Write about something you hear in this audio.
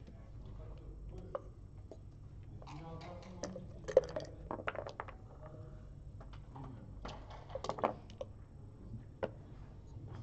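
Plastic checkers click and clack as they are moved on a board.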